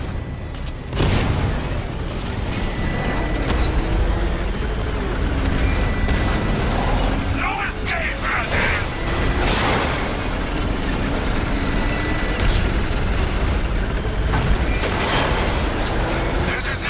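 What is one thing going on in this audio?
A vehicle races fast with a loud rushing roar.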